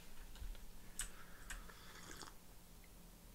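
A young man sips a drink from a mug.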